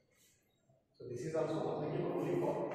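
A man speaks up close, explaining calmly.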